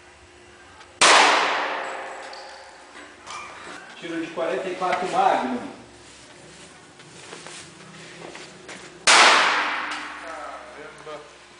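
A gun fires a loud shot that echoes away.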